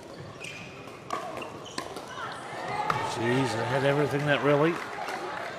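Sneakers squeak on a hard court.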